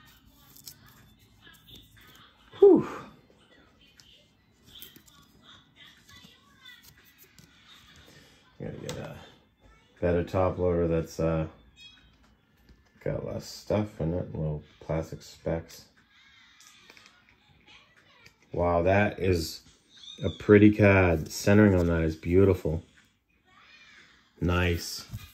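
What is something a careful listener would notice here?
Trading cards slide and rustle between fingers.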